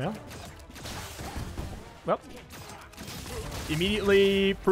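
Blades slash and strike in a fast fight.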